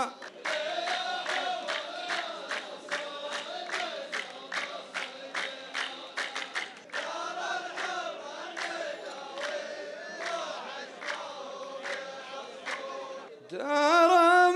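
A group of men clap their hands in a steady rhythm.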